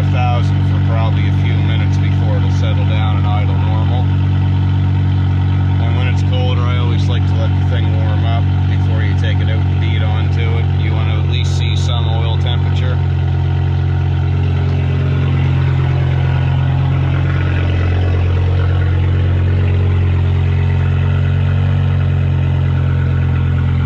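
A car engine idles with a steady, deep rumble.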